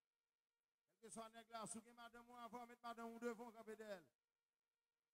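A man sings loudly into a microphone over a loudspeaker.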